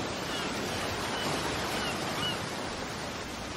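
A seagull cries overhead.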